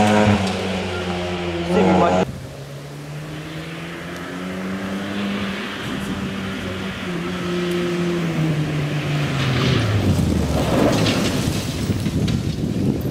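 A rally car engine roars and revs as the car approaches.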